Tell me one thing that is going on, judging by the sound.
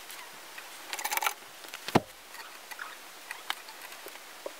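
Hangers clink and scrape on a rail.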